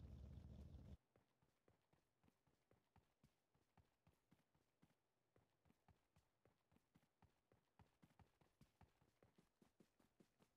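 Footsteps patter steadily on the ground.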